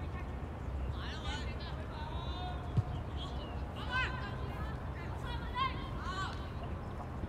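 Young men shout to each other across an outdoor field, at a distance.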